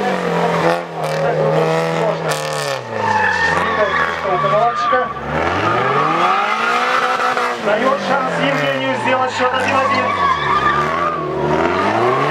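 Tyres squeal on asphalt as a car drifts.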